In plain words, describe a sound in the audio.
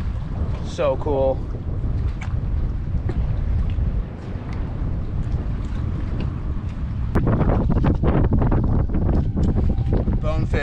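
Water laps gently against a dock.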